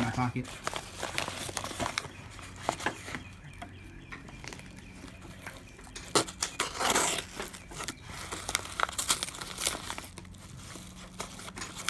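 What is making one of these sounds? A knife slits through a paper envelope.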